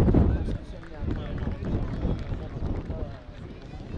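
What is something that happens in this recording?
Young men clap their hands.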